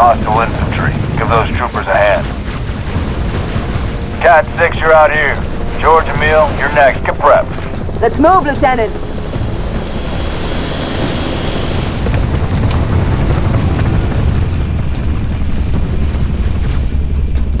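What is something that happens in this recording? Spacecraft engines rumble low and steady.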